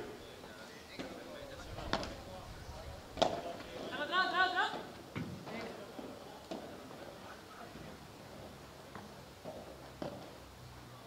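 A padel racket strikes a ball outdoors.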